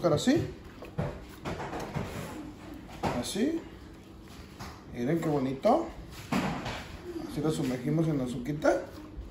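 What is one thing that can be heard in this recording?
A pastry is set down on a baking tray with a soft tap.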